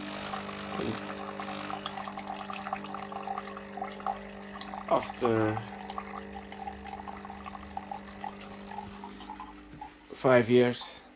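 A coffee machine hums steadily.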